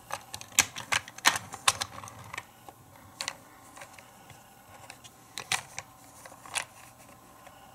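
Small plastic pieces clatter and click as a hand moves them on a plastic toy.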